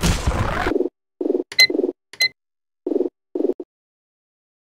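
Menu buttons click softly.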